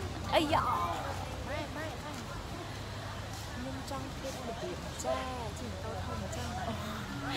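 Young women talk cheerfully up close.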